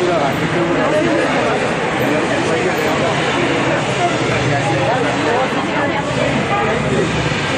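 A crowd of young women chatter excitedly close by.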